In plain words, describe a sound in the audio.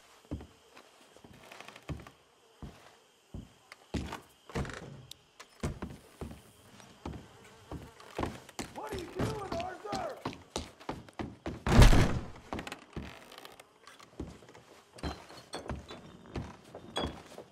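Boots thud on creaking wooden floorboards.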